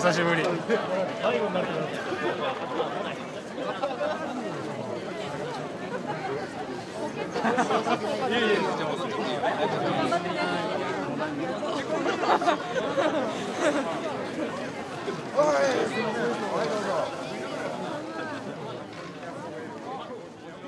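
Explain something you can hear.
A large outdoor crowd murmurs and chatters all around.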